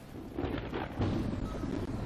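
A fire burns with a loud whoosh.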